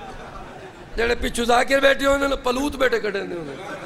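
A crowd of men chants loudly together in response.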